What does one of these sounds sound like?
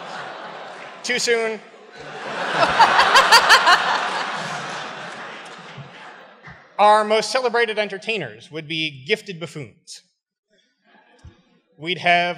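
A man speaks through a microphone to an audience.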